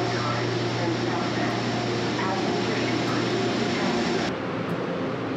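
Suitcase wheels roll along a hard platform.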